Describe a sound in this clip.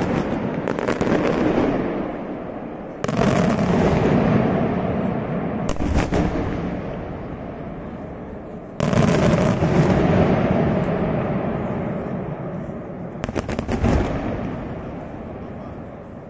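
Daytime firework shells burst with loud booms that echo across the hills.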